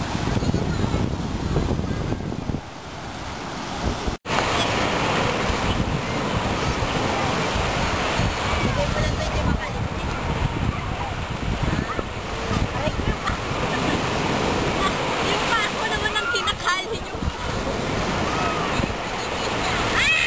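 Waves break and wash onto the shore nearby.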